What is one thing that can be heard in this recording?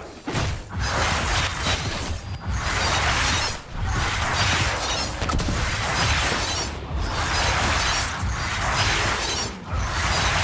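Weapons clash and clang in a fight.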